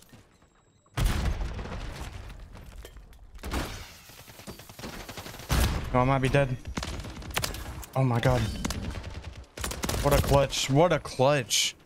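Rapid gunfire bursts out in loud volleys.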